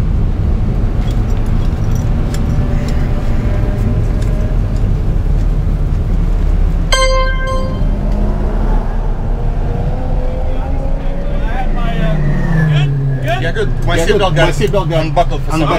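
A turbocharged four-cylinder hatchback engine drones from inside the cabin as the car rolls slowly in low gear.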